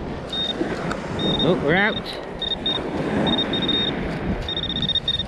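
A metal detector probe beeps in short, high bursts.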